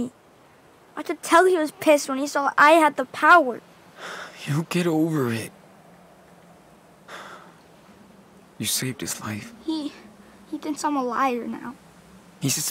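A young boy speaks quietly and sadly.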